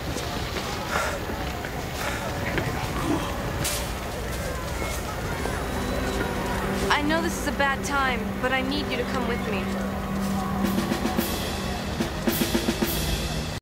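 A young man speaks with strain, close by.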